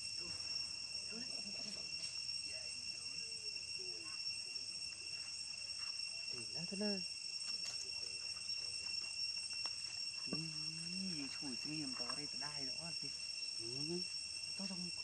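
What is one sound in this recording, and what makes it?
A baby monkey squeals and whimpers close by.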